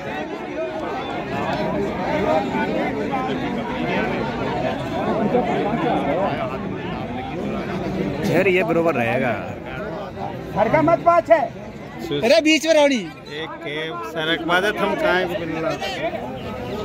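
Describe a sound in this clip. A large outdoor crowd chatters throughout.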